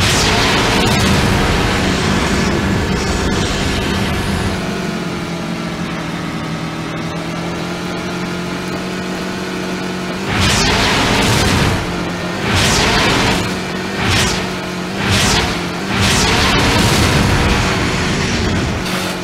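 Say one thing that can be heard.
A quad bike engine hums steadily and revs up in bursts.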